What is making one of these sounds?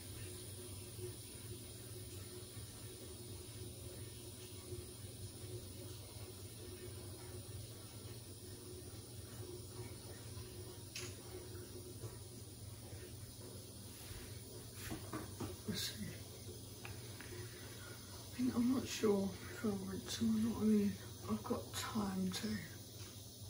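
Water sloshes inside a washing machine.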